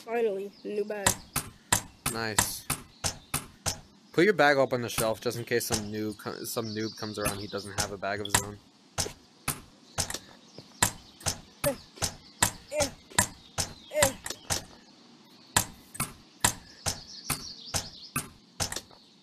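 A hammer strikes metal repeatedly with ringing clangs.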